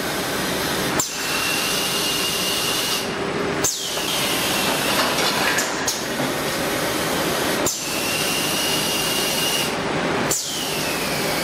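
A machine's sealing bar clacks shut now and then.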